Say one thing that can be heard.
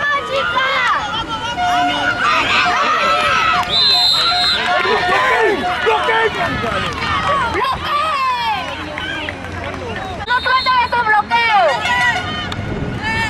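Young women shout and scream excitedly outdoors.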